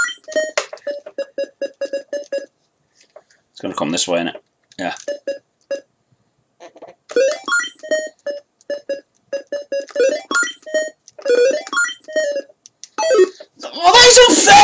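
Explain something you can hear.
A video game gives off rapid electronic bleeps.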